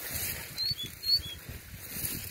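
A small caged bird chirps in short, high notes.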